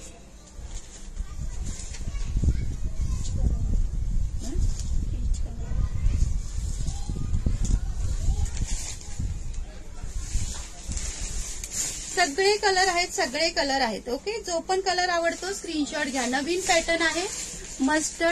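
Silk fabric rustles as it is unfolded and handled.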